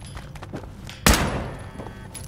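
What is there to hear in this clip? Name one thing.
A single loud rifle shot rings out.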